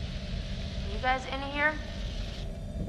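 A young woman calls out questioningly from nearby.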